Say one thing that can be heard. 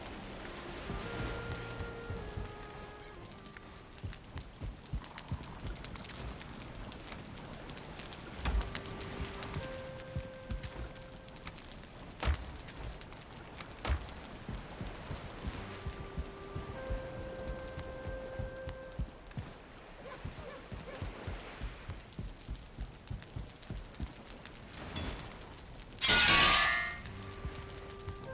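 Short soft chimes ring out now and then.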